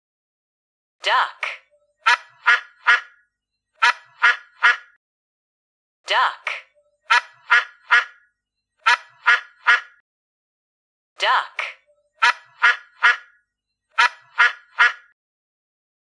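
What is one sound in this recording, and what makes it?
A goose honks loudly in quick bursts.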